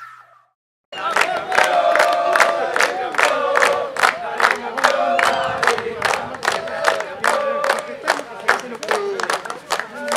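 People clap their hands in quick steady applause.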